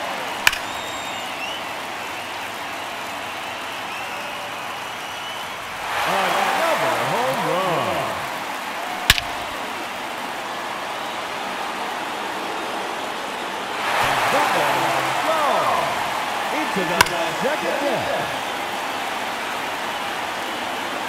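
A large stadium crowd murmurs and cheers, with loud swells of cheering.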